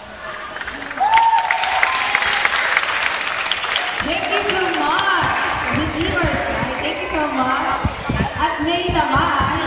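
An audience cheers and shouts.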